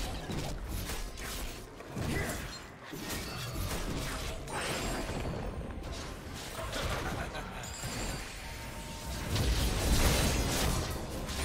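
Spell effects whoosh and crackle in quick bursts during a fight.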